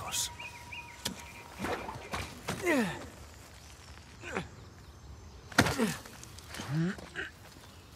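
Hands and boots scrape and thud against rock during a climb.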